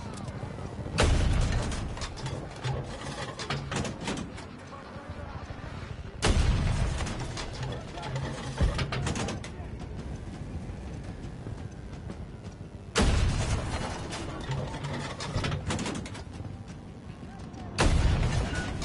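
A shoulder-fired rocket launcher fires with a heavy boom.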